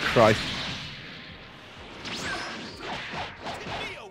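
Punches thud and crack in quick bursts.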